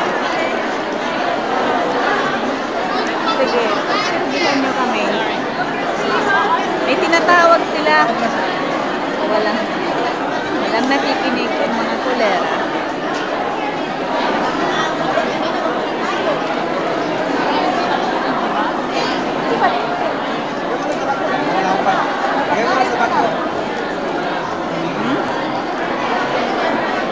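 A crowd of adults chatters all around in a large echoing hall.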